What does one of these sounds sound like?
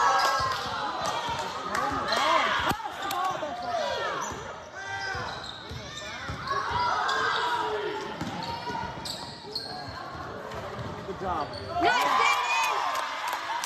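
Spectators chatter in the stands.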